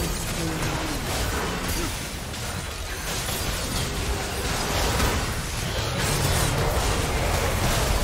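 Magic spells crackle and boom in a busy fight.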